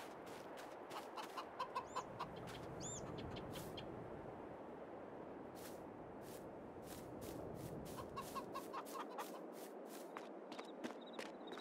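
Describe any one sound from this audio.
Birds chirp outdoors.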